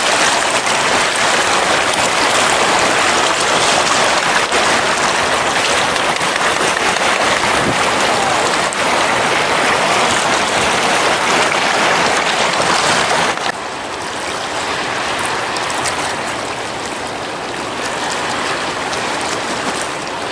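Small waves lap and splash on open water.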